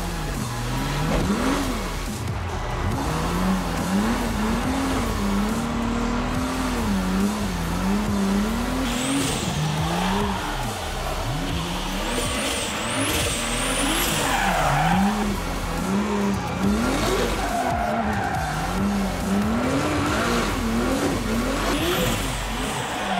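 A car engine revs hard, rising and falling over and over.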